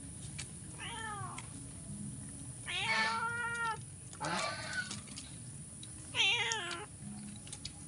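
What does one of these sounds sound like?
A chicken squawks loudly close by, several times.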